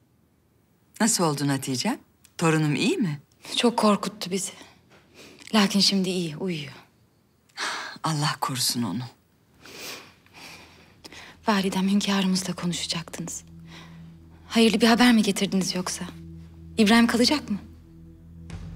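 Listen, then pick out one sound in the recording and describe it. A middle-aged woman speaks calmly and quietly up close.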